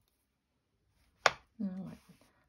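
Scissors snip through thread.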